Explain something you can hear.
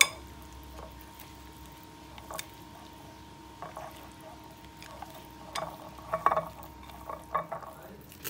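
Chopsticks stir and clink against a bowl.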